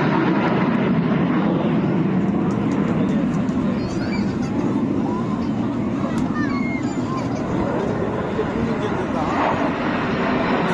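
A large crowd chatters and calls out nearby.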